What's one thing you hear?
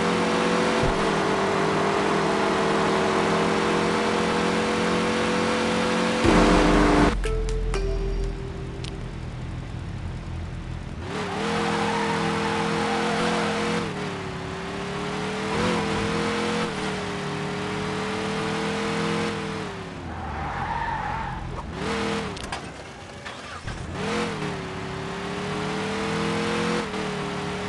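A car engine roars at high revs and shifts pitch as the car speeds up and slows down.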